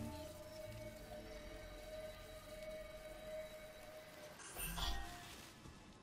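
A magical spell hums and shimmers, then ends with a burst.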